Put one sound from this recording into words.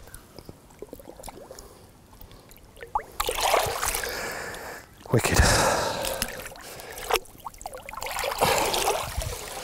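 Hands swish through shallow water.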